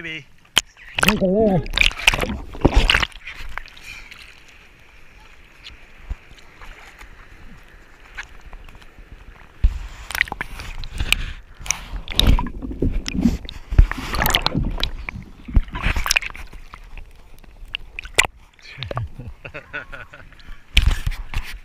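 Water splashes as hands paddle a surfboard.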